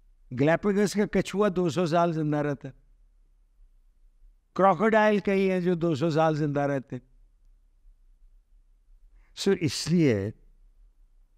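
An older man speaks expressively into a close microphone, with pauses between phrases.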